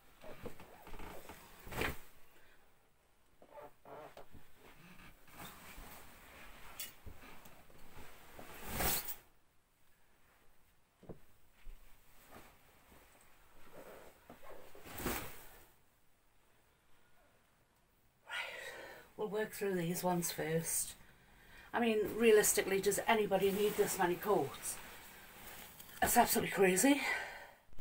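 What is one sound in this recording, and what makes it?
Heavy coats rustle as they are dropped onto a pile.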